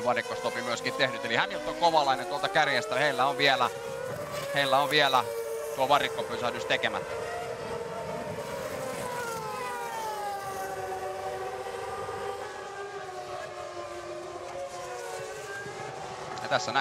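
A racing car engine screams and shifts gears as the car passes on a wet track.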